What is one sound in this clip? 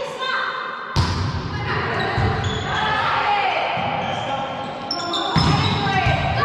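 A volleyball is struck with a sharp smack in a large echoing hall.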